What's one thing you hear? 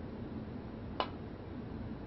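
A cue tip strikes a snooker ball with a sharp click.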